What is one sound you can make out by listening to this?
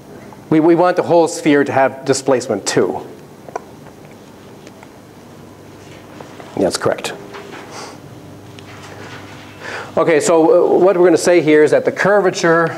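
A middle-aged man lectures calmly through a clip-on microphone.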